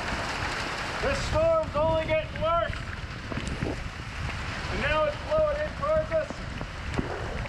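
A young man talks cheerfully close by.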